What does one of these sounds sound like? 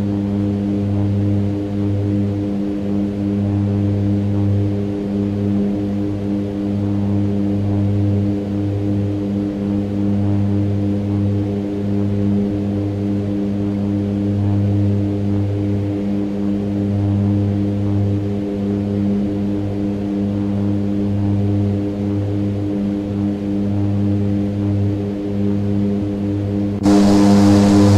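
An aircraft's engines drone steadily and loudly.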